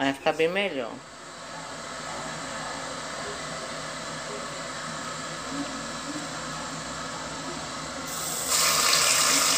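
Oil sizzles quietly in a hot pan.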